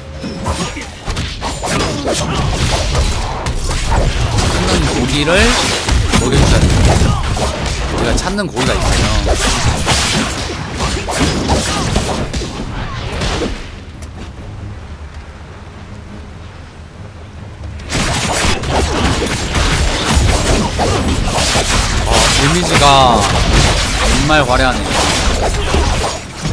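Game swords clash and strike in quick bursts.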